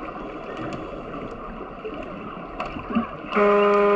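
Air bubbles gurgle and rise from a diver's breathing underwater.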